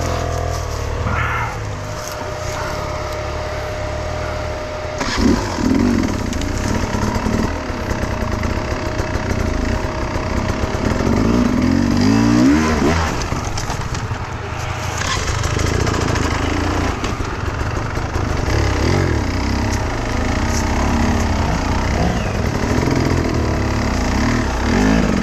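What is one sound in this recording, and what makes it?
A dirt bike engine idles and revs up close.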